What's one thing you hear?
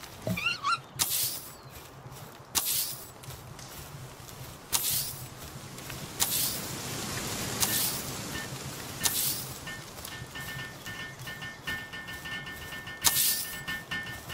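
Objects pop into place with short, bright whooshes, again and again.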